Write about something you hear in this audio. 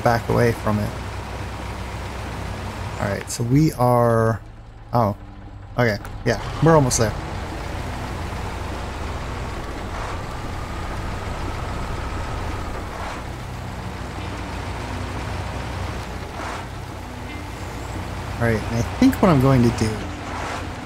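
A heavy truck engine rumbles steadily as the truck drives slowly.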